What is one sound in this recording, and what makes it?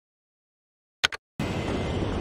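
A menu button clicks once.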